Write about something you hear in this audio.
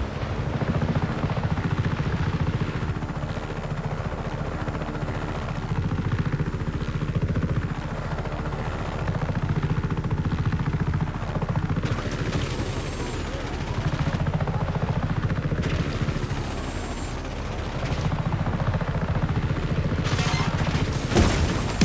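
A helicopter's rotor thumps steadily close by.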